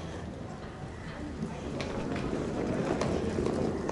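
Suitcase wheels rumble over stone paving.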